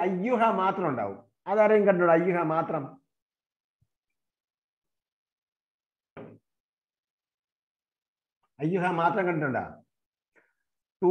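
An elderly man recites in a chanting voice over an online call, with pauses.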